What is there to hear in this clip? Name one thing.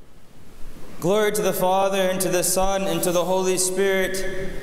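A man chants in a steady, sung voice in a large echoing hall.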